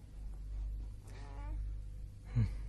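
A baby coos and squeals.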